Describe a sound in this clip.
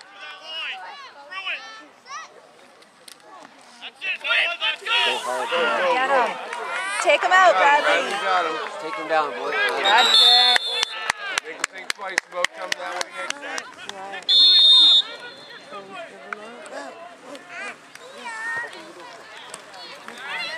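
Young boys shout and cheer excitedly outdoors.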